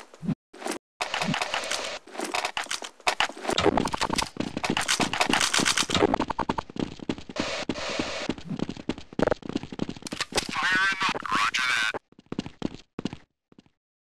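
Footsteps run across stone pavement.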